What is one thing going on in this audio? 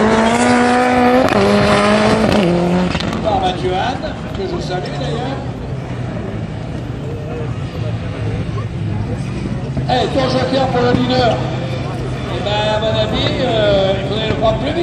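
A racing car engine roars loudly, revving high and shifting up through the gears.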